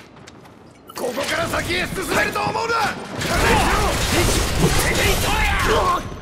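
A sword clangs against metal.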